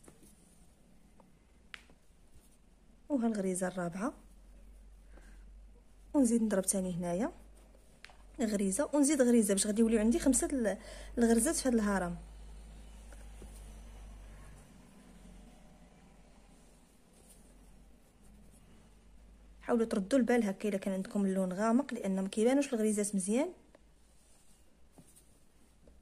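A needle and thread pull softly through cloth.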